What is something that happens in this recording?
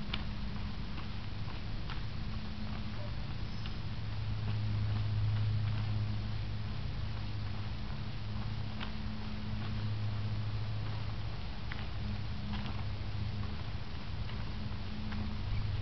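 Hands slap against arms in quick, sharp blocks.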